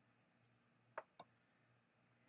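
Two short menu blips sound in the silence.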